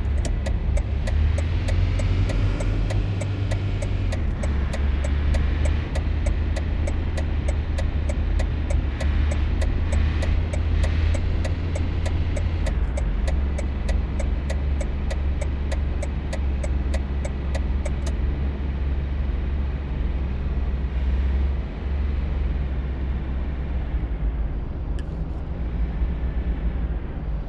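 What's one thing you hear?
A van engine hums steadily as it drives.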